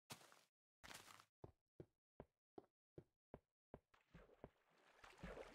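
Footsteps tap on stone at an even pace.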